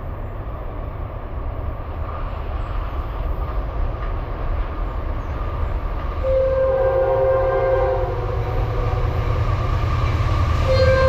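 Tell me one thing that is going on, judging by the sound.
A train approaches with a steady rumble that grows louder.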